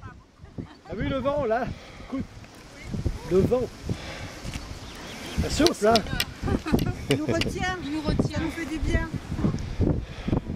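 Women talk casually close by, outdoors.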